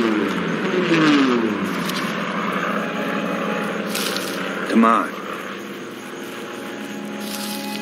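Leaves rustle as someone pushes through dense plants.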